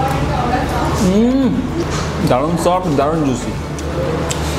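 A young man hums with pleasure while chewing.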